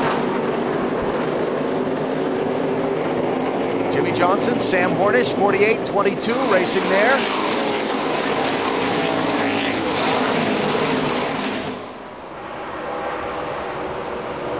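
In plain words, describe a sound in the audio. Race car engines roar loudly as a pack of cars speeds past.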